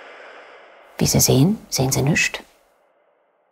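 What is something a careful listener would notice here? A young woman speaks briefly and close by.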